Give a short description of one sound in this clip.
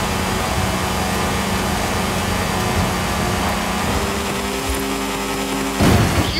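A racing buggy engine roars at high revs.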